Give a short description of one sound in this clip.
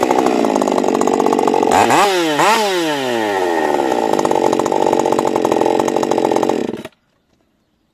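A chainsaw roars loudly, revving up and down as it cuts through wood.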